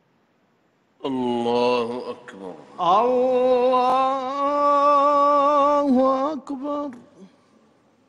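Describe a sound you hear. A man chants in a long, drawn-out voice through a loudspeaker in a large echoing hall.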